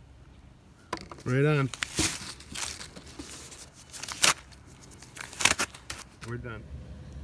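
Rubber gloves rustle and snap as they are pulled off.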